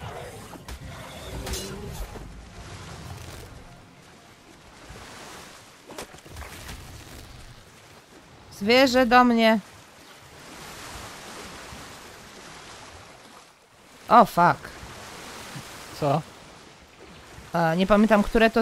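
Water splashes steadily as someone wades.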